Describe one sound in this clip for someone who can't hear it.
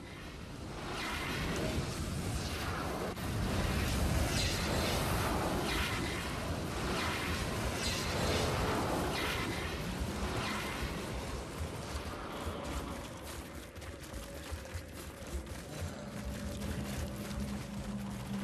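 Footsteps crunch through snow at a run.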